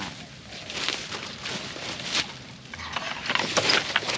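Large leaves rustle and swish as they are pushed aside.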